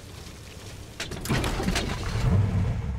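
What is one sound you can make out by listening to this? A truck engine starts and rumbles.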